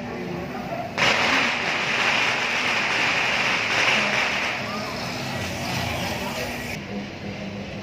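A motorbike engine putters by close up.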